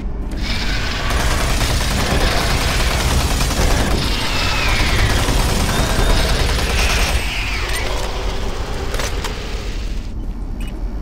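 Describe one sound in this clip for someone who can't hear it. A rapid-fire gun shoots in bursts with a loud roar.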